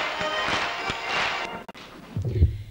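Accordions play a lively tune.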